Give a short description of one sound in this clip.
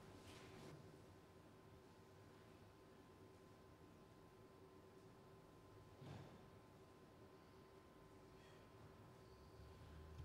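A theremin plays a soft, wavering tone.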